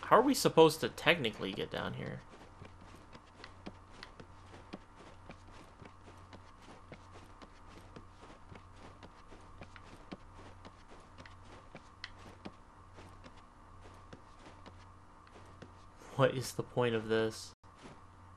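Hands and feet knock on wooden ladder rungs in a steady climbing rhythm.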